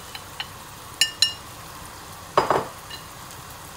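A bowl clinks against the rim of a pan.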